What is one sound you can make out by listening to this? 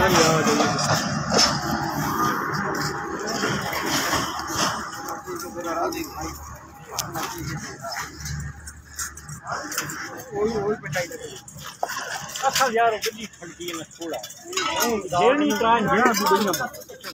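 Several men talk loudly and with animation close by, outdoors.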